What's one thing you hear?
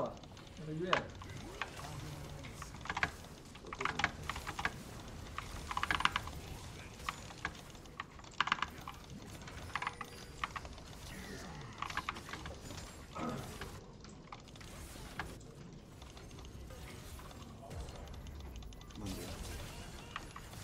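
A young man talks quietly into a microphone.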